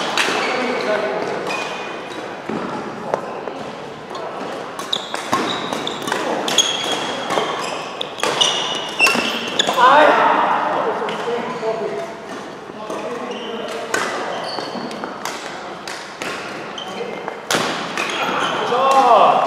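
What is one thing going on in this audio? Badminton rackets strike a shuttlecock back and forth in an echoing hall.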